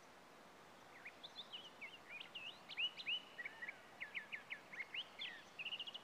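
Metal wind chimes clink and ring as they sway.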